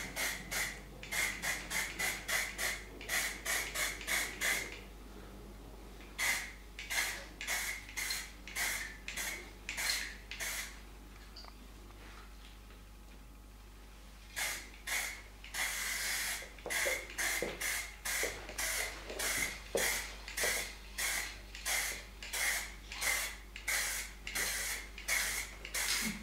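An aerosol can sprays in short, rapid hissing bursts, with a few pauses.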